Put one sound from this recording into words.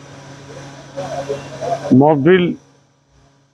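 An elderly man speaks into a close microphone.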